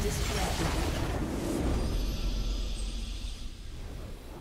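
A triumphant victory fanfare swells and rings out.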